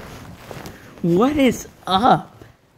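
A young man speaks close to a phone microphone in a playful sing-song voice.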